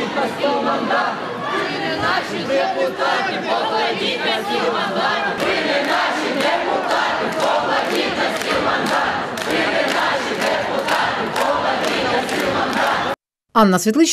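A large crowd of people talks and murmurs loudly in an echoing hall.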